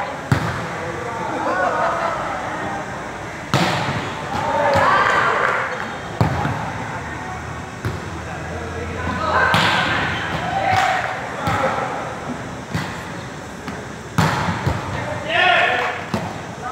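Young players shout and call out to one another in a large echoing hall.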